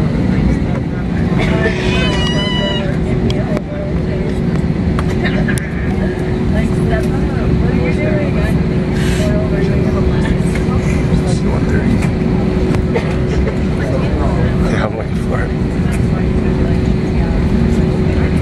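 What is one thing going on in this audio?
Jet engines roar steadily from inside an airliner.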